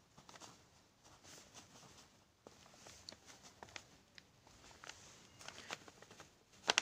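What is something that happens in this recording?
A pen scratches and taps on paper close by.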